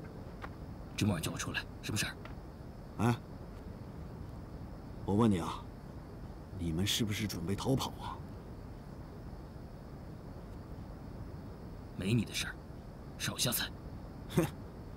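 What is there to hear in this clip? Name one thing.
A younger man asks a question calmly and quietly, close by.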